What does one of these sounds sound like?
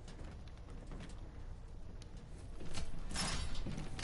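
A metal door lock clicks and whirs open.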